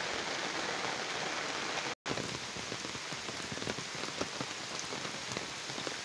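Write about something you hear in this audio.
Steady rain patters on leaves outdoors.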